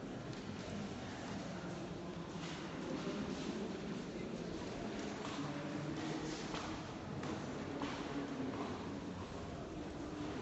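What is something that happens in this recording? A woman speaks aloud in a large, echoing room.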